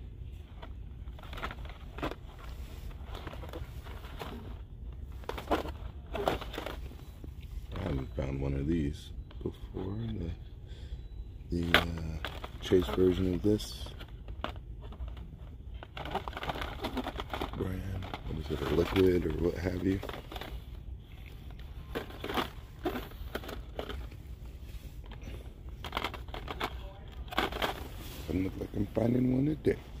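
Plastic toy packages rustle and clack against each other.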